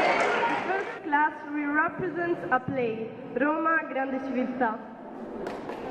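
A young woman speaks through a microphone to a hall.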